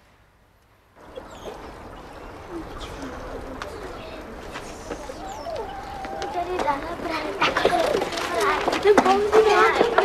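Children talk with animation outdoors.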